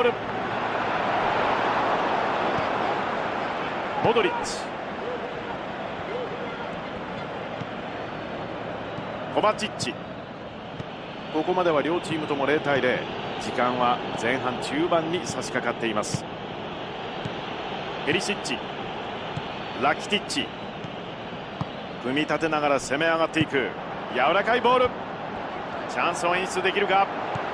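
A stadium crowd roars and murmurs.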